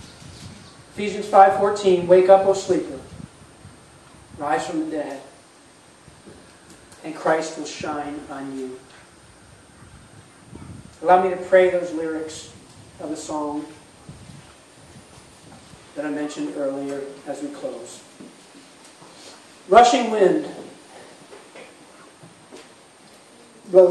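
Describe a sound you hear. A middle-aged man speaks calmly into a microphone, with pauses between phrases.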